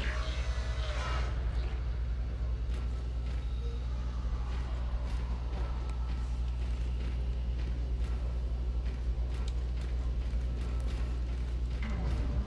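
Heavy metallic footsteps clank on a hard floor.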